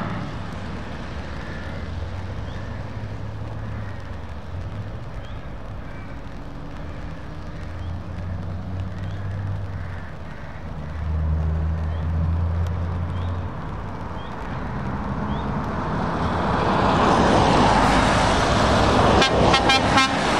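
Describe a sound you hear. Heavy lorry engines rumble steadily as a convoy approaches.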